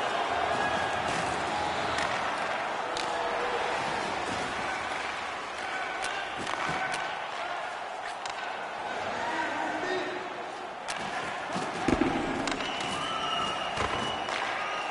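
Sticks click against a puck.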